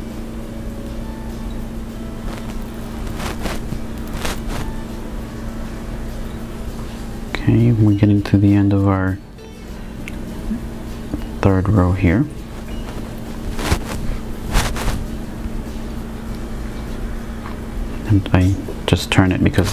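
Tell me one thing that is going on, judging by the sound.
Small glass beads click softly against each other on a thread.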